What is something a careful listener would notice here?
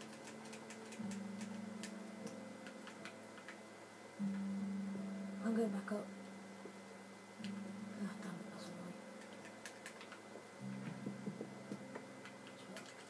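A video game plays low droning tones through a television speaker.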